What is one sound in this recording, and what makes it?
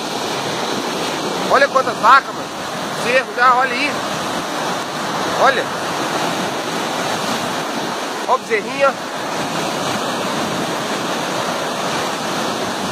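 Muddy floodwater rushes along in a steady roar.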